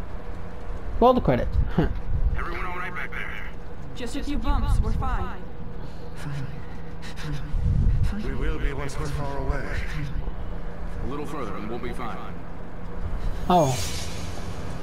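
A man speaks urgently and loudly nearby.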